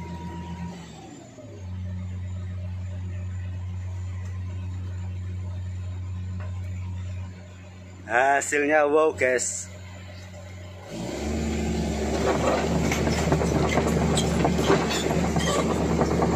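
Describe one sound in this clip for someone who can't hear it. A heavy machine's engine rumbles steadily close by, growing louder toward the end.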